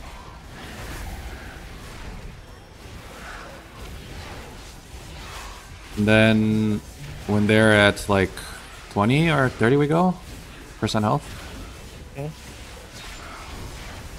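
Magic spells whoosh and burst during a fantasy battle.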